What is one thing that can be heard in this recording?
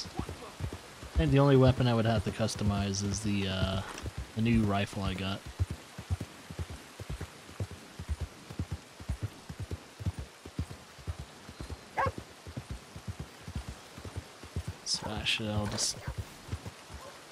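Horse hooves clop steadily on a dirt road.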